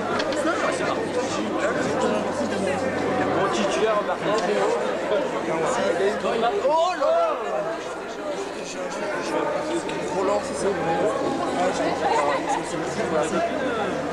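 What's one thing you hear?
A crowd of men chatter all around, close by.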